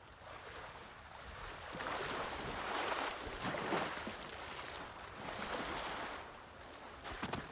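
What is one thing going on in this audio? Water splashes and swirls as someone wades through a pool.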